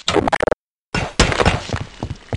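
A crowbar strikes and squelches into a body.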